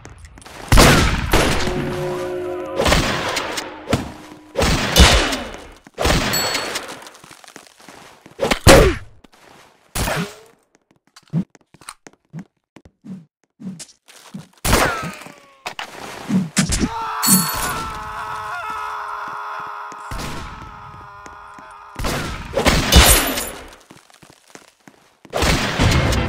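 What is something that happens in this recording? Gunshots and knife slashes crack in quick bursts.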